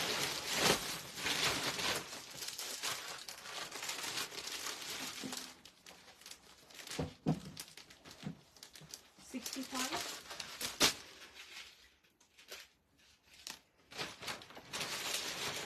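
Silk fabric rustles as it is unfolded and handled.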